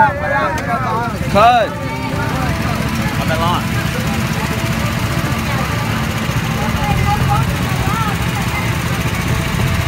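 Go-kart engines rumble and idle close by.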